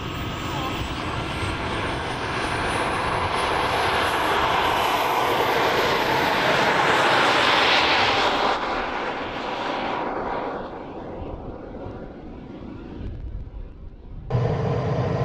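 A small remote-controlled car whines past at high speed and fades into the distance.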